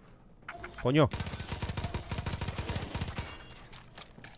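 A gun fires a rapid burst of shots in an echoing tunnel.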